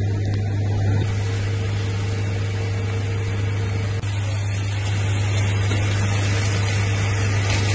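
Liquid pours and splashes into a tank.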